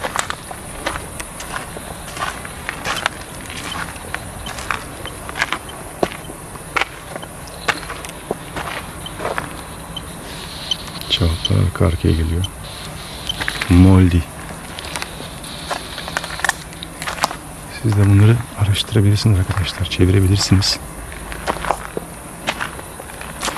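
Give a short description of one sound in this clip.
Footsteps crunch on dirt and gravel outdoors.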